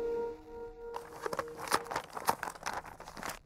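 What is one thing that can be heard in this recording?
Paper rustles and slides on a table.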